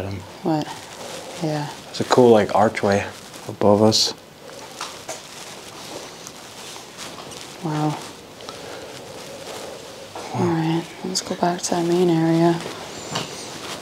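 A young woman talks with animation, close by, in an echoing room.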